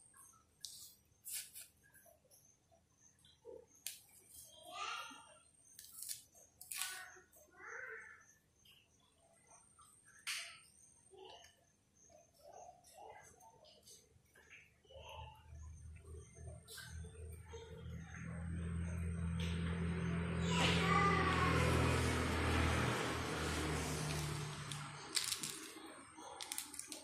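Fruit skin and pulp tear softly as fingers peel them apart.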